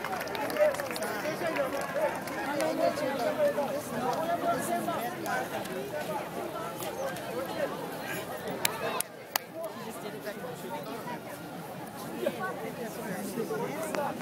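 A large outdoor crowd chatters with many voices close by.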